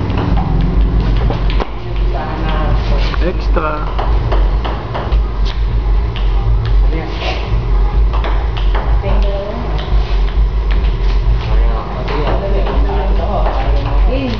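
A table tennis ball clicks sharply as a paddle strikes it, again and again.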